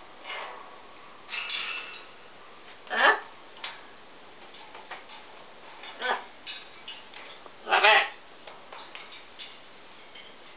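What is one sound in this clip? A parrot's claws and beak clink on a metal cage.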